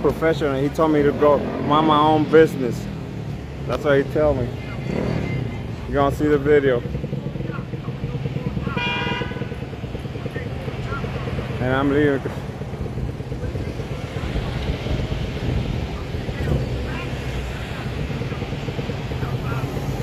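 City traffic hums steadily in the background.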